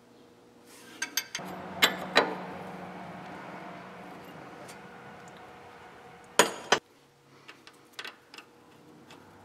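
Metal parts clink and knock as hands work on an engine.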